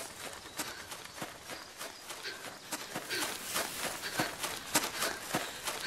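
A girl pants with quick, nervous breaths.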